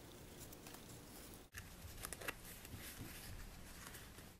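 A small plastic box clicks as it is opened and shut by hand.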